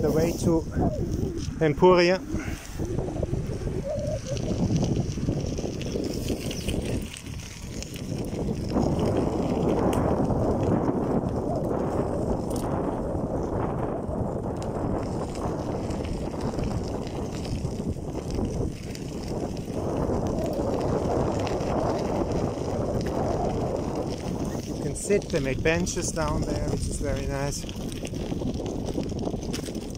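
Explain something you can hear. Tyres roll and crunch steadily over a gravel path.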